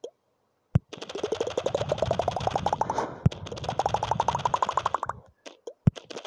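A game's ball smashes through platforms with rapid clicks that climb in pitch.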